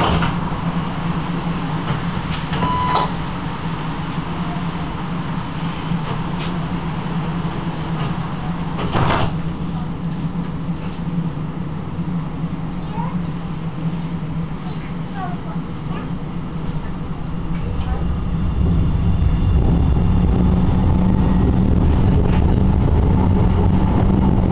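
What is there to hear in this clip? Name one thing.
Rain patters on a tram window.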